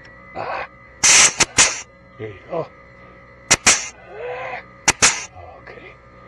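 A grease gun hisses and squirts in short, sharp bursts.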